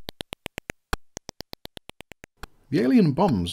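Quick electronic laser shots fire in a rapid, even rhythm.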